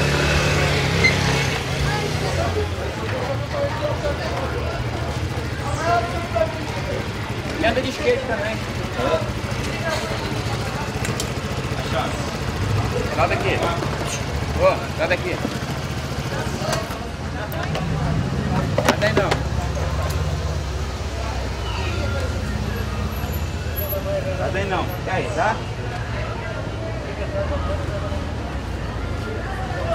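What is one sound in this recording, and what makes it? A scooter engine idles with a steady low hum.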